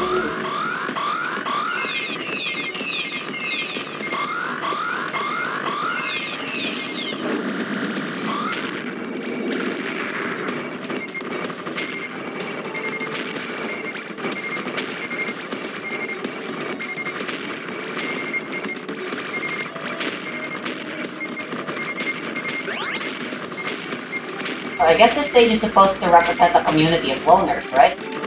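Electronic music plays.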